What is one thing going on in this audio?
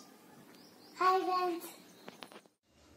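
A young girl speaks cheerfully close by.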